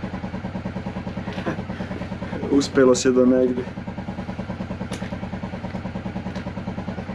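A small engine idles with a steady, rapid chugging.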